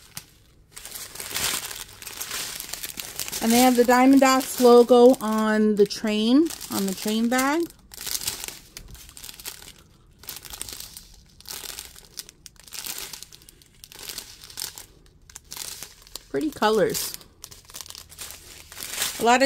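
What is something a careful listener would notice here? Plastic packets crinkle and rustle as hands handle them.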